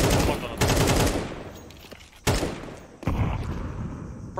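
A rifle fires loud bursts of gunshots.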